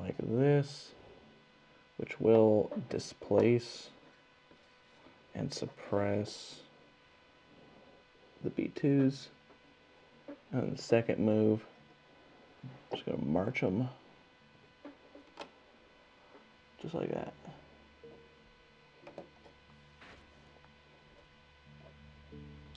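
Small plastic game pieces tap and slide on a tabletop.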